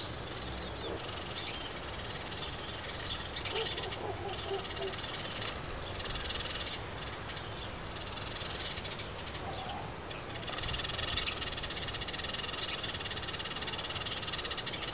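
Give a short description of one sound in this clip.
Small birds twitter and chatter continuously in the background.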